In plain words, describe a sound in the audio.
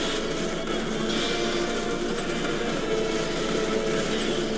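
A powerful energy beam blasts and booms.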